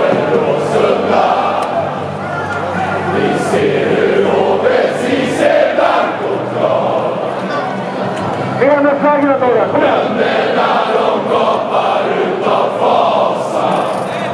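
A large crowd sings and chants loudly in a big echoing stadium.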